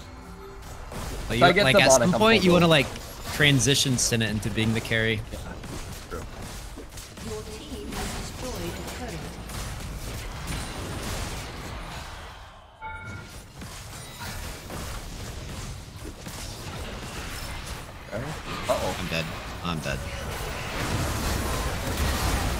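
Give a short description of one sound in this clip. Video game spells and hits whoosh and clash.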